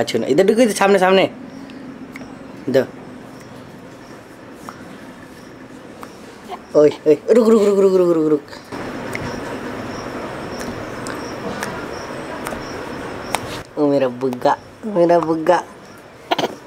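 A baby coos and babbles.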